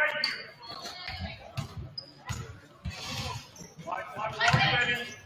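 A crowd murmurs and cheers in an echoing gym.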